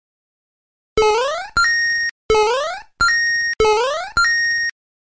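Short electronic game jingles sweep upward in pitch, one after another.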